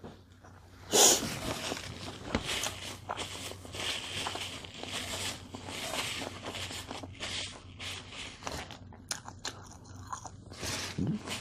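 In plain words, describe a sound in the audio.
Paper wrapping rustles and crinkles.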